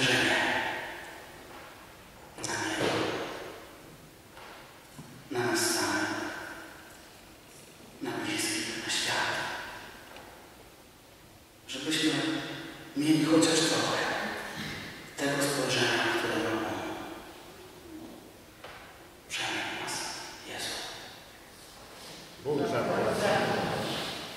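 A man speaks calmly into a microphone, his voice echoing through a large reverberant hall.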